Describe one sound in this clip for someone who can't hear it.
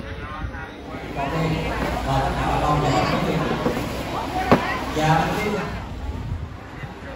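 A crowd murmurs and chatters in a busy, echoing hall.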